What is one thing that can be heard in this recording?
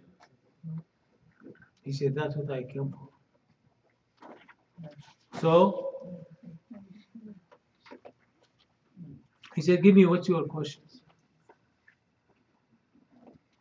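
An elderly man recites in a slow, chanting voice through a microphone, with pauses between phrases.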